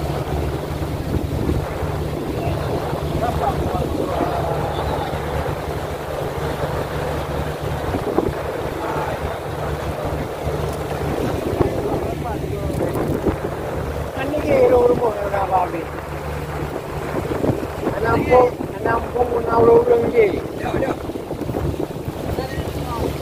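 Waves wash and splash on the open sea.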